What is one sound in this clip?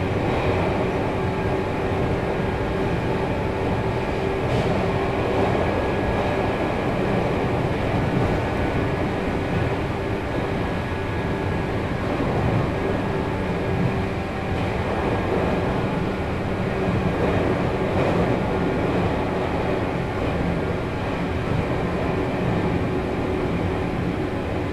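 A train rumbles steadily along the tracks, its motors humming.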